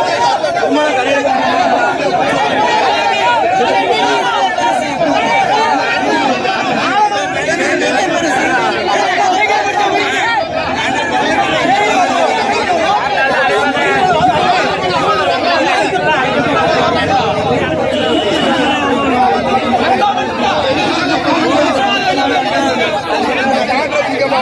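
A man shouts loudly and with passion close by.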